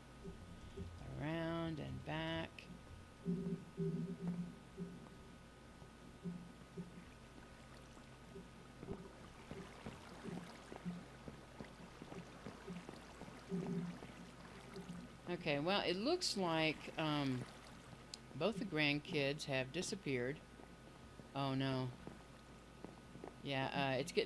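An elderly woman talks calmly into a microphone.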